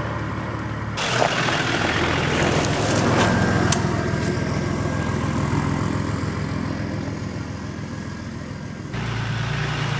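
Tyres crunch over dry leaves and twigs.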